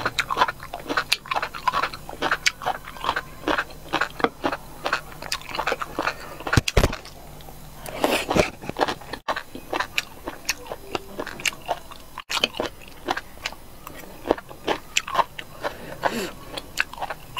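A young woman chews food wetly and noisily close to a microphone.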